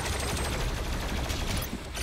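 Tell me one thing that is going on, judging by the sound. Heavy gunfire blasts in rapid bursts.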